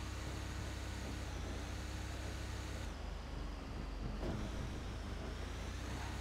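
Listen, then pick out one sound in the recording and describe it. A heavy truck engine rumbles steadily as the truck drives along.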